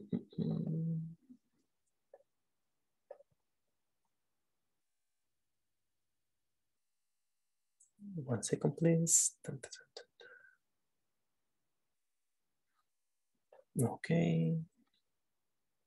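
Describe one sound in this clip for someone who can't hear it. A man speaks calmly in short bursts, heard through an online call.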